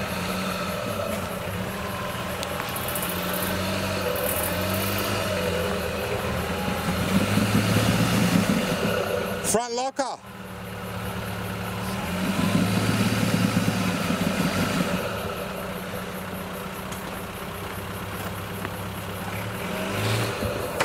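An off-road vehicle's engine rumbles close by and revs up in surges as it climbs over rocks.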